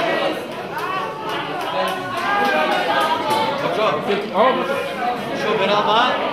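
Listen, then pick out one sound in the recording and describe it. A group of young men and women chat and laugh together close by.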